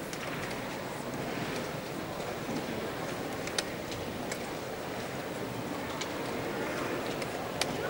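A wooden chess piece taps softly on a board.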